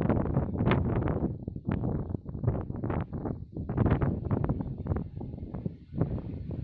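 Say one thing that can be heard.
Wind gusts buffet the microphone outdoors.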